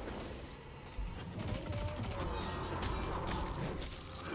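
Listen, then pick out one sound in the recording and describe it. A heavy punch lands with a crunching thud.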